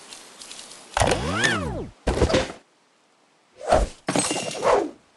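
A cheerful chime rings out.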